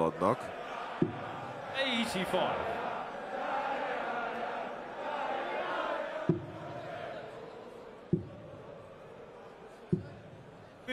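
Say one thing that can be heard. A dart thuds into a board.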